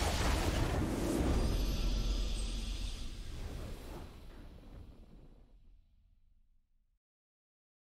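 A triumphant game fanfare swells and fades.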